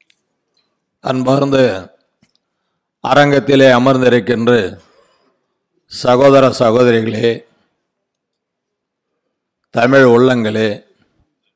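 An older man speaks forcefully into a microphone over loudspeakers, in short bursts.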